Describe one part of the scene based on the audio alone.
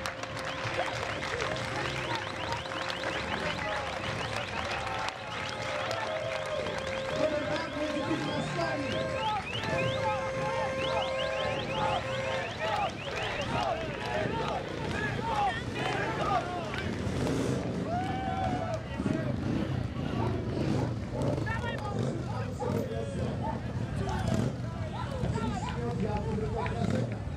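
Motorcycle engines rumble and idle nearby.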